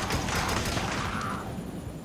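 A rifle fires bursts of shots.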